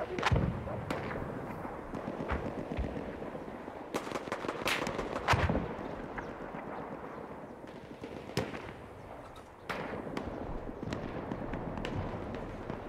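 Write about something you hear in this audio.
Rifle shots crack in the distance.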